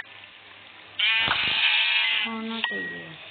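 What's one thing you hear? A sheep bleats nearby.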